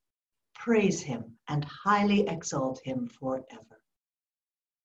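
A middle-aged woman speaks warmly through an online call.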